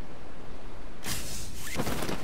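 A parachute snaps open.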